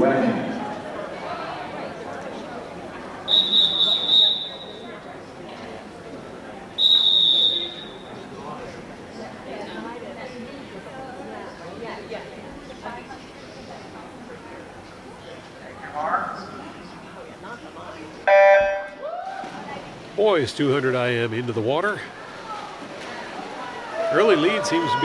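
A crowd chatters in a large echoing hall.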